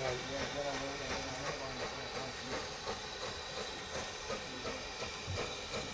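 A steam tank locomotive chuffs as it approaches.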